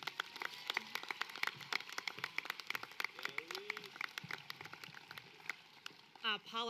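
An audience claps in scattered applause outdoors.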